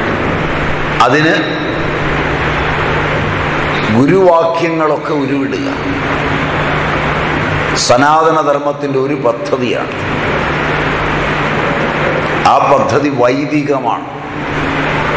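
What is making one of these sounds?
A middle-aged man speaks in short, cheerful bursts close by.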